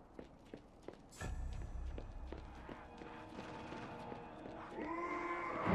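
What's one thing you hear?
Footsteps tap on a hard floor in an echoing tunnel.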